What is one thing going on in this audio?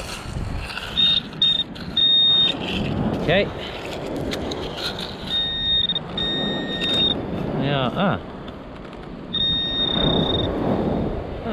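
A metal detector beeps in short, high tones.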